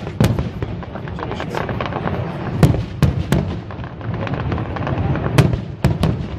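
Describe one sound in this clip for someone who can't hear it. Fireworks bang loudly outdoors, one after another.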